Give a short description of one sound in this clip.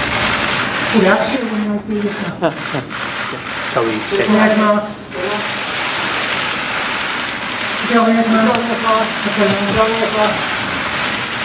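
A man speaks loudly in a noisy room.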